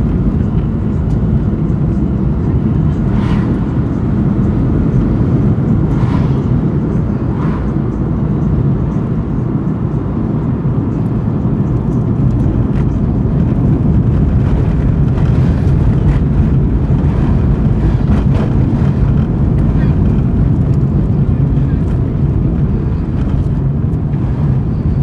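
Wind gusts and rumbles loudly outdoors.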